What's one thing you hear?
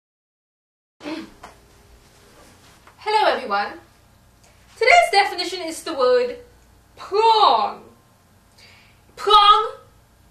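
A young woman speaks clearly and with animation close by.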